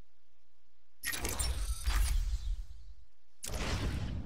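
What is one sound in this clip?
A loud booming whoosh swells and fades.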